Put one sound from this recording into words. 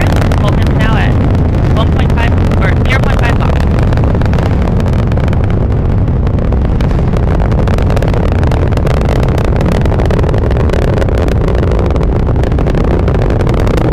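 A rocket engine roars loudly and steadily with a deep rumble and crackle.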